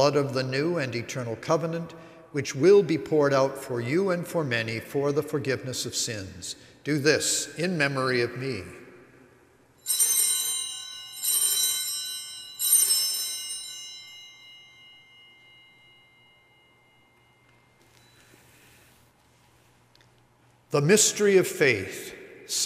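An elderly man chants prayers into a microphone in a reverberant hall.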